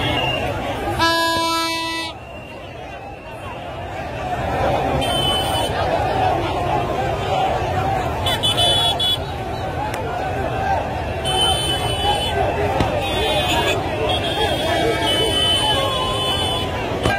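Car horns honk repeatedly.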